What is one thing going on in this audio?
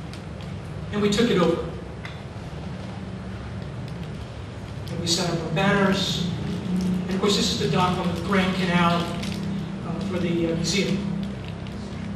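A middle-aged man speaks calmly into a microphone.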